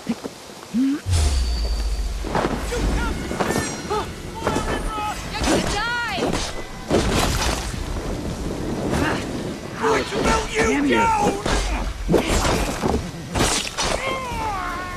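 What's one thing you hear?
Swords clash and strike hard in a fierce fight.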